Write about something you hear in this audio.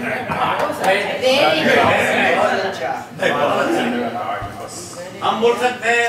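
Two men laugh and talk into a microphone.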